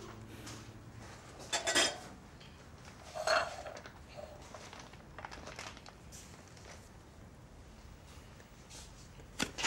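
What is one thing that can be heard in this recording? Footsteps cross a hard floor.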